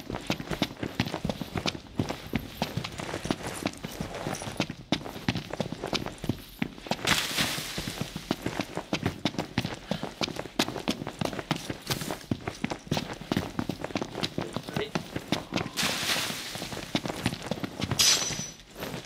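Footsteps run quickly over dry ground and gravel.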